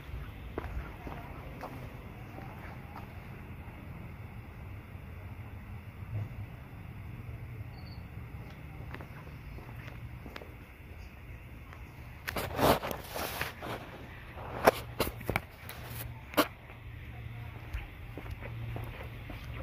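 Footsteps scuff on a hard floor.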